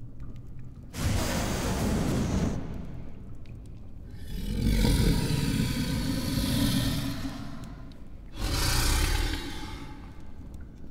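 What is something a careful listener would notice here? A man screams loudly, close by.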